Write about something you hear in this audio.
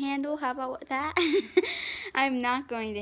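A young girl laughs loudly.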